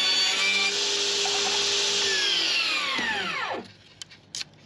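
A table saw's blade whirs and winds down to a stop.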